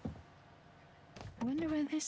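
A door handle rattles as it is tried.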